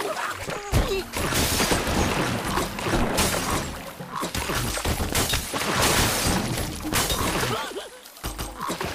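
Blocks crash and clatter as a tower collapses.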